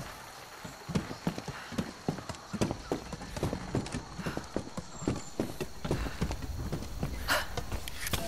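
Footsteps and knocks sound on a creaking wooden ladder.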